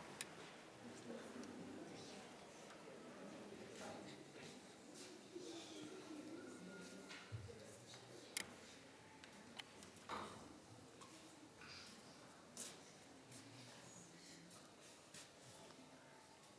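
A crowd of people murmurs quietly in a large echoing room.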